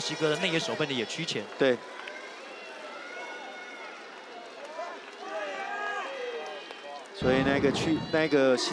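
A crowd murmurs in a large stadium.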